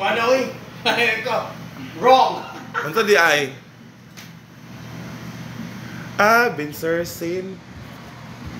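A man speaks loudly and laughs close by, through a handheld microphone.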